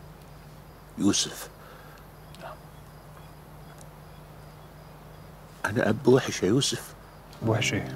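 An elderly man speaks in a low, earnest voice close by.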